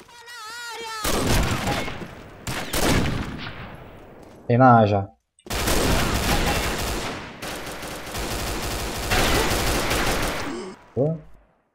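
Rifle shots and gunfire crack loudly.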